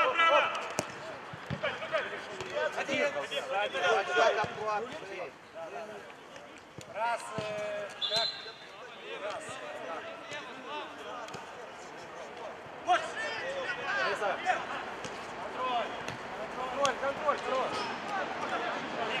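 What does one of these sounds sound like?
Men shout to each other across an outdoor pitch.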